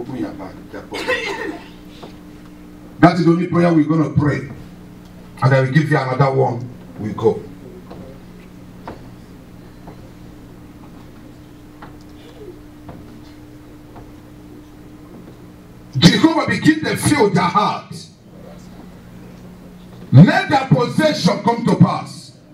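A man preaches with animation through a microphone and loudspeakers, in bursts with pauses.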